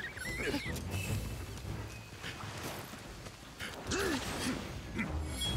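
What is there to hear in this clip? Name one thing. Sword blows strike a creature with sharp impacts.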